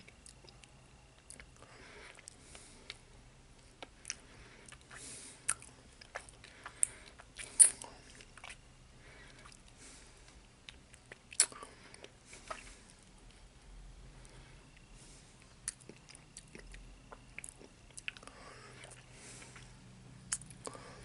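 A toothpick clicks and scrapes against teeth up close.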